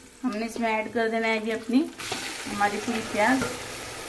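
Sliced onions tumble into a pan.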